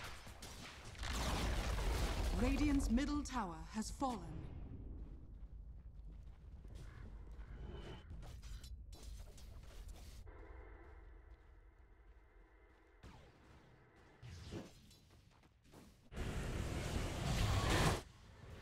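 Spell effects whoosh and crackle in a fight.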